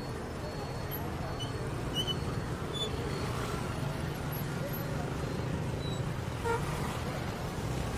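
A truck engine rumbles as it drives past.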